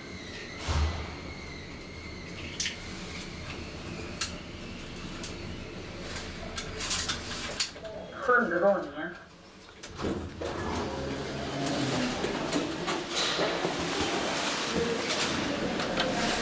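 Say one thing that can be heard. An elevator car hums and rattles as it moves.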